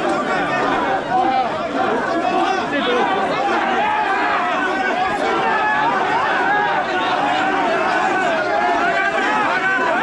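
A large crowd of men and women chants and shouts in rhythm close by.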